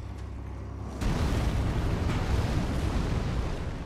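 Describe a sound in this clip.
A monstrous creature slams a heavy club onto the ground with a deep rumbling thud.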